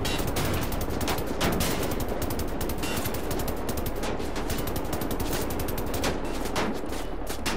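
An automatic gun fires rapid bursts.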